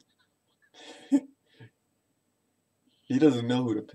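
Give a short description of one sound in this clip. A young man laughs close to the microphone.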